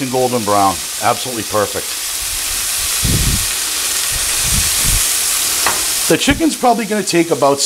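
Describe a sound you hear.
Food sizzles in a hot pan.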